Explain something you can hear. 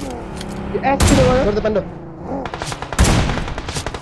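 A rifle fires a few sharp shots.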